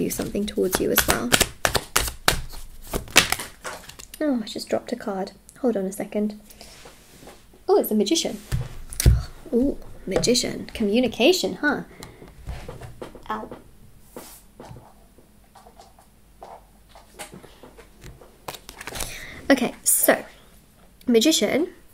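Playing cards slide and tap on a wooden table.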